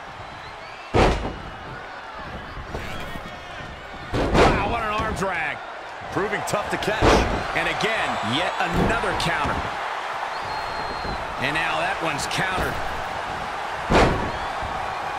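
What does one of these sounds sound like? Heavy thuds sound as wrestlers hit the mat.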